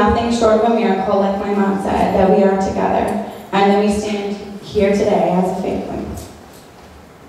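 A young woman sings loudly into a microphone.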